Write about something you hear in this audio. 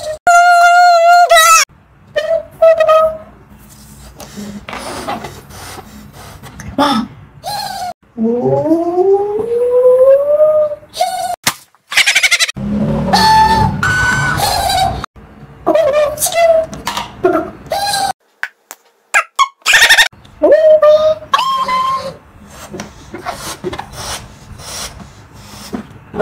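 A man makes playful vocal sounds close by.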